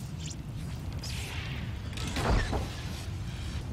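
A lightsaber hums and swishes through the air.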